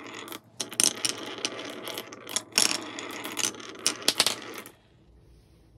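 Glass marbles click and clatter against one another.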